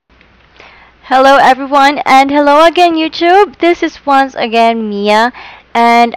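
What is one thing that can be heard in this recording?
A young woman talks with animation through a headset microphone.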